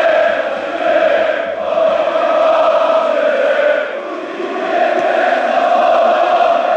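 A large stadium crowd chants loudly in unison, echoing outdoors.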